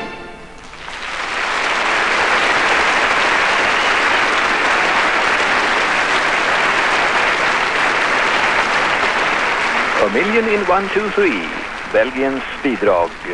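A large audience applauds loudly, then the applause fades away.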